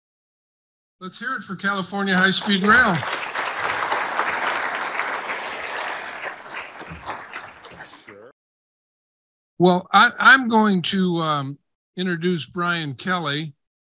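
An older man speaks with animation into a microphone.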